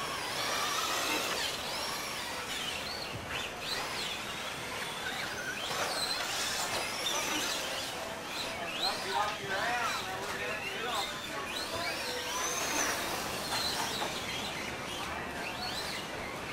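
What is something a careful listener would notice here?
A small electric motor whines loudly, rising and falling in pitch as a toy car speeds around.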